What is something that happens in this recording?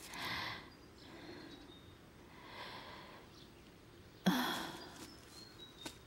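An elderly woman speaks softly and warmly close by.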